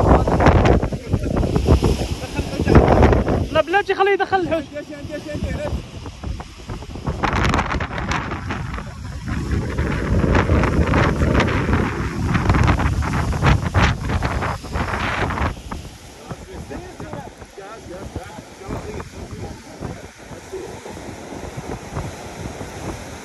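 Several men talk excitedly nearby.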